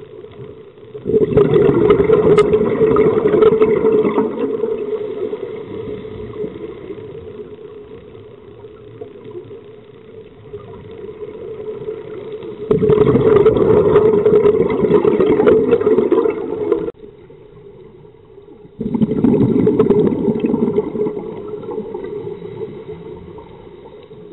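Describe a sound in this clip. Air bubbles rush and gurgle loudly from a diver's breathing gear, in long bursts.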